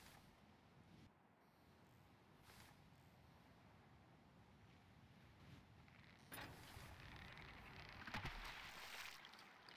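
Water rushes along a sailing ship's hull.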